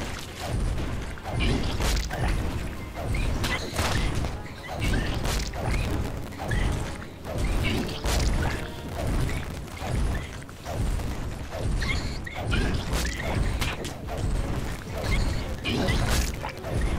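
Repeated sharp hits and blasts ring out in a fast fight.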